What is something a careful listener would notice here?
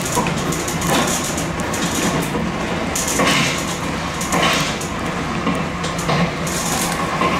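Train wheels clack over rail joints in a regular rhythm.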